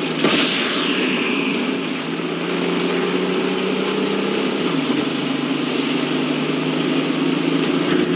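Tank tracks clatter over the ground.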